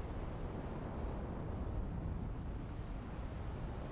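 A spacecraft's thrusters roar steadily.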